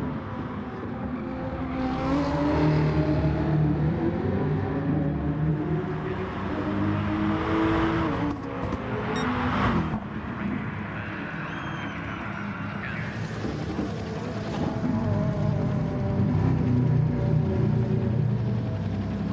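Racing car engines roar, rising and falling in pitch as they shift through gears.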